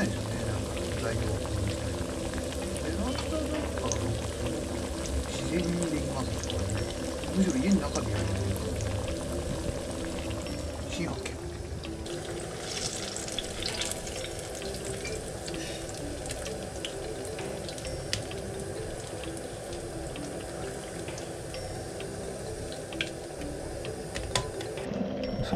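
Hot oil sizzles and bubbles steadily in a pan.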